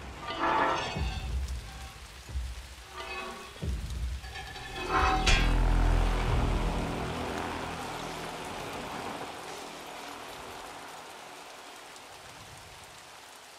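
Rain pours down steadily.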